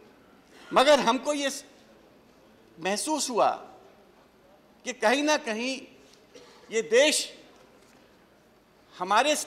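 A middle-aged man speaks into a microphone with emphasis, in short bursts with pauses.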